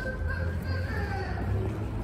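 A child's footsteps tap on a hard stone floor.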